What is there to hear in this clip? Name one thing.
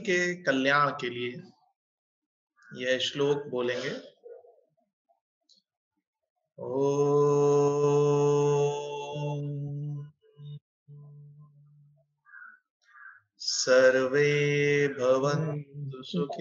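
An elderly man speaks calmly over an online call, with pauses.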